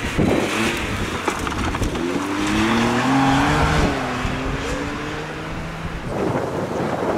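A rally car engine revs hard, its pitch rising and falling as it shifts gears.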